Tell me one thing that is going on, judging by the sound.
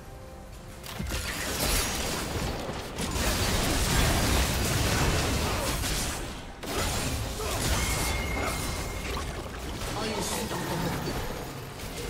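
Magic spells burst and weapons clash in a busy, noisy fight.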